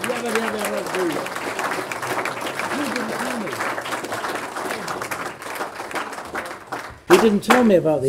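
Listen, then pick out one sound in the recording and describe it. An elderly man laughs heartily close by.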